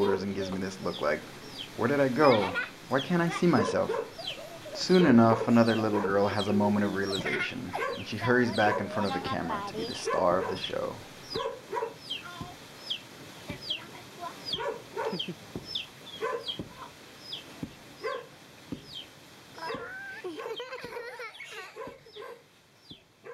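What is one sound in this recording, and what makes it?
Young girls chatter and laugh close by.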